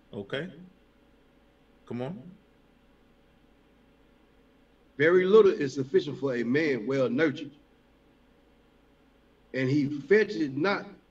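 A man speaks calmly and close through an online call microphone.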